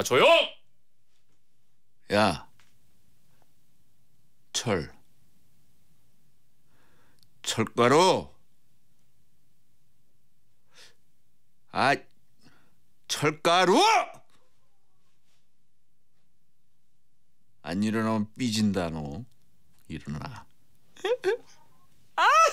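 A man speaks into a microphone in short, calm bursts.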